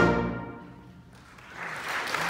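A band of brass and woodwinds plays a held chord that fades out.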